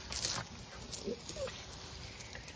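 Puppies yip and whine as they play.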